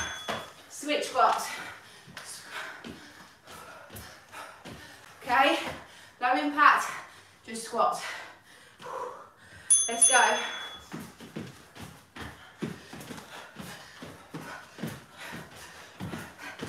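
Feet thump on a mat as people jump.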